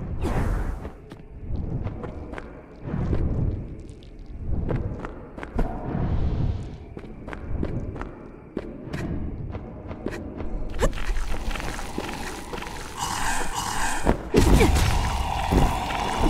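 Blades slash and strike in quick, repeated hits.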